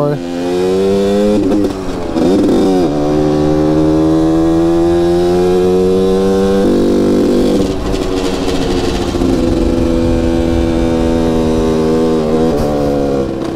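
A motorcycle engine hums close by, rising and falling in pitch as it shifts gears.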